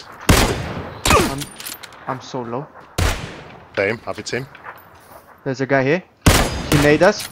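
A rifle fires nearby in sharp, loud cracks.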